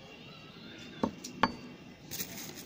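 A plastic ring knocks down onto a hard surface.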